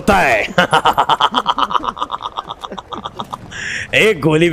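A young man laughs loudly and heartily into a microphone.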